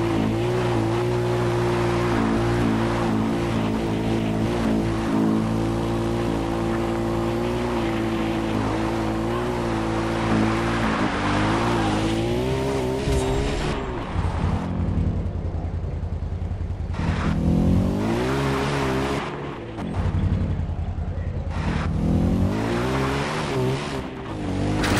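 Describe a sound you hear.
A quad bike engine drones steadily and revs up and down.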